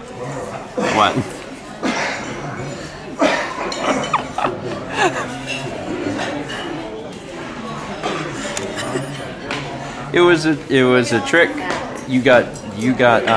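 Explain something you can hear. Many people chatter in the background.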